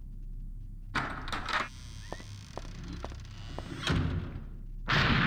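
A window creaks and scrapes open.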